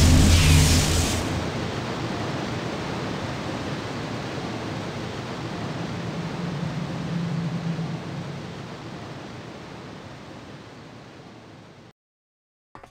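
A heavy stone block grinds and rumbles as it slowly lowers, fading away.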